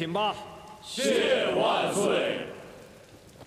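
A crowd of men answers together loudly in unison.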